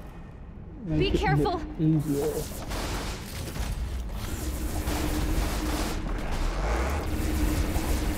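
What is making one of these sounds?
Fiery blasts rumble and roar loudly.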